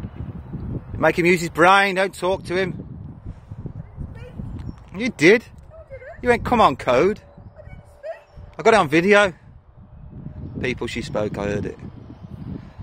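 A woman calls out to a dog outdoors.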